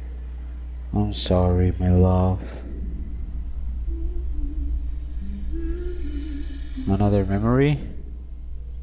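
A man hums softly nearby.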